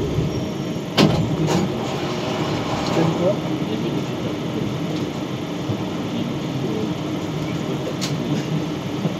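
Train wheels clack sharply on the rails.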